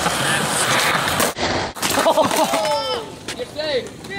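A skateboard clatters onto concrete after a fall.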